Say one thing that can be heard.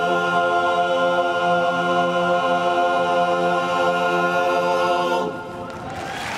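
A men's choir sings a loud, sustained chord in a large hall.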